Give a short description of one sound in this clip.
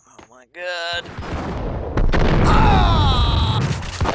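Gunshots blast rapidly in an echoing room.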